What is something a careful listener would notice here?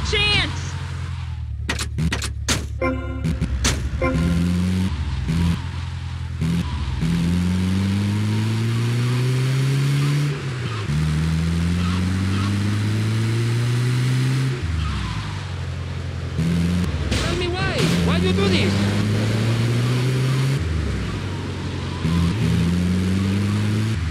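A vehicle engine revs up and down, shifting gears repeatedly as it drives.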